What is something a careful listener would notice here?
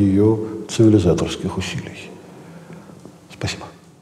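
A middle-aged man speaks calmly into a microphone in an echoing room.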